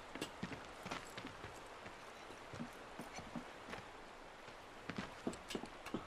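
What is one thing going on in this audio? Hands and boots clatter up a wooden ladder.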